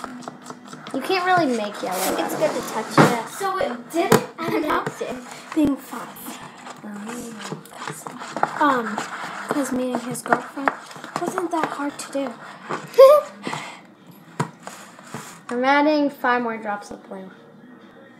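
Young girls talk with animation close by.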